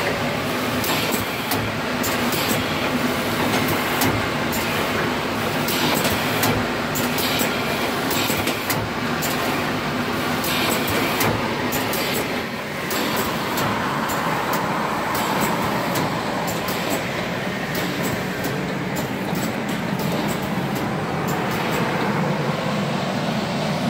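A packaging machine hums and clatters steadily.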